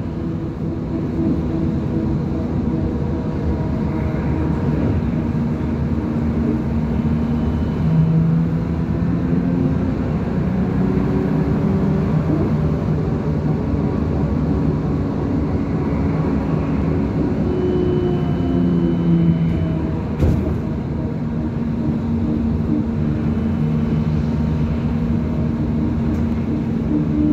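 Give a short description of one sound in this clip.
A vehicle's engine hums steadily as it drives along.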